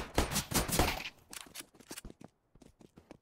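A pistol is reloaded with quick metallic clicks.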